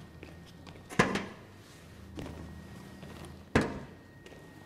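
Metal paint cans clank down onto a metal rack.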